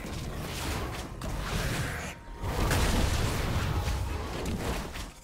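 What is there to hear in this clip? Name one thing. Magic spells crackle and burst in a video game fight.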